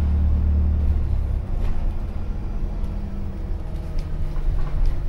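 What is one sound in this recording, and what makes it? The bus interior rattles and creaks softly as it drives.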